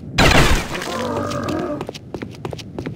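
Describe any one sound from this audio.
A zombie groans and snarls close by.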